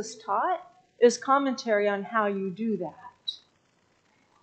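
A woman speaks calmly through a microphone.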